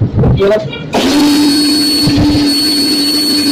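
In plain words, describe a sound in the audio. A pressure washer sprays water with a steady loud hiss and whine.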